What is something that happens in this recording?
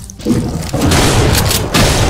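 A demon growls close by.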